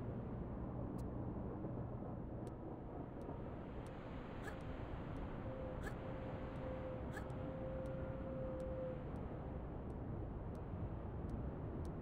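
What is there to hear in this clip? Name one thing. Hands grab a metal bar overhead in soft, regular clicks.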